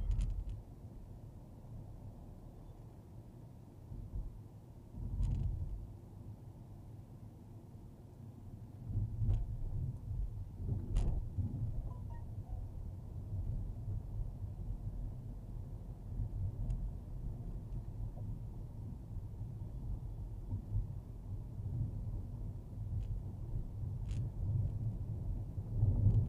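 Tyres rumble over a road surface.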